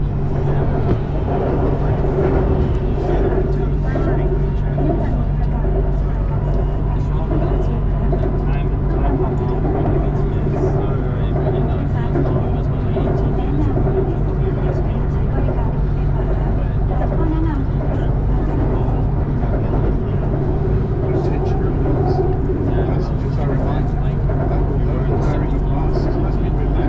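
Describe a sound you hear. A train rumbles steadily along an elevated track.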